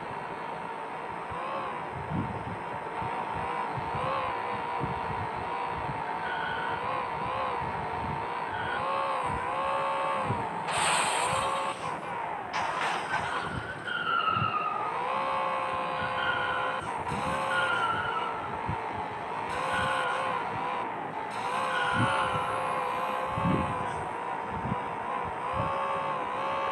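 A car engine revs up and down steadily.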